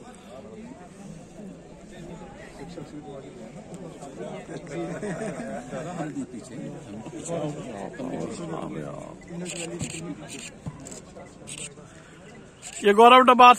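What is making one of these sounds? A crowd of men chatter in the background outdoors.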